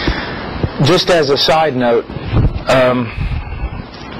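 A middle-aged man speaks calmly and earnestly into a close microphone.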